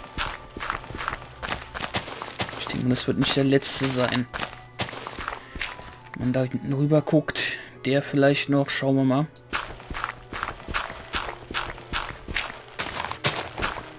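Dirt crunches in quick, repeated bursts as it is dug.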